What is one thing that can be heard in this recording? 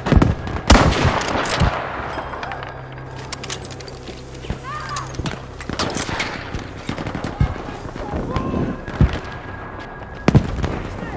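Rifle shots crack loudly, with echoes.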